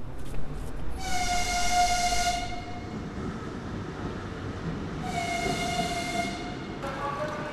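A train horn blares twice, long and loud.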